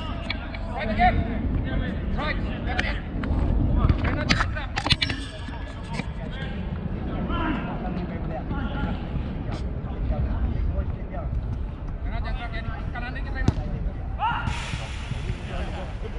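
Young men talk and call out to each other outdoors at a distance.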